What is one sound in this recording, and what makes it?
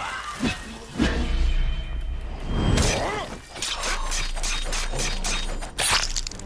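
A heavy weapon strikes with sharp metallic hits.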